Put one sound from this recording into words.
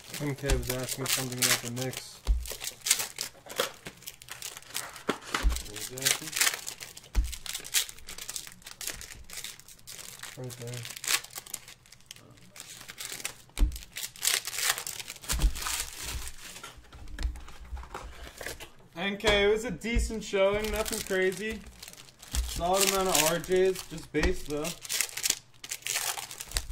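Plastic wrappers crinkle and rustle as card packs are handled.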